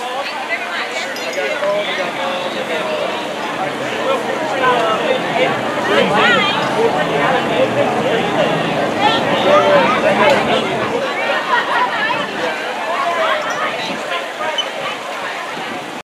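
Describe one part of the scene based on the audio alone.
A crowd of men and women chatter and cheer nearby, outdoors.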